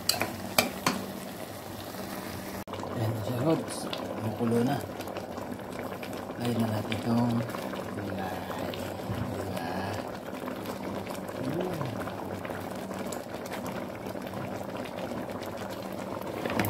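Broth simmers and bubbles in a pot.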